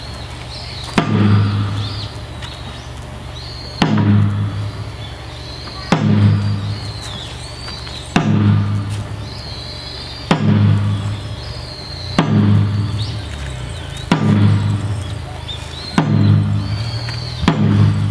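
A large drum booms in slow, even beats outdoors.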